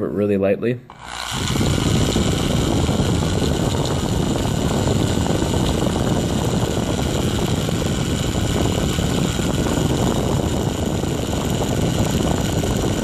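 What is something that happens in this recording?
A cordless drill whirs steadily at close range.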